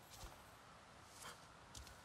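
Leafy vines rustle as they are brushed aside.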